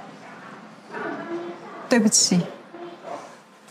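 A young woman speaks softly and apologetically, close by.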